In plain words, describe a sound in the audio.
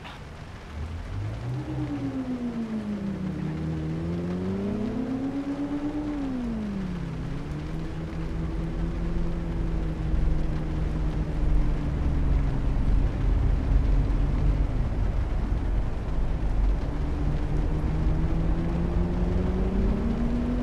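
A car engine hums and revs, rising and falling in pitch as the car speeds up and slows down.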